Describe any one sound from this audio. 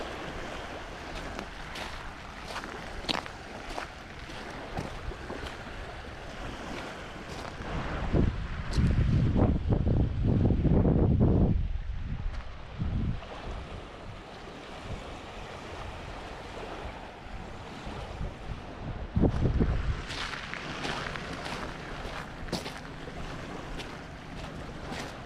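Small waves lap gently on a pebble shore.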